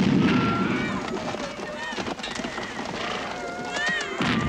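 Horses' hooves pound the ground at a gallop.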